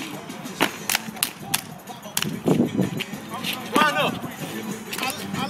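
Shoes stamp and scuff on pavement outdoors.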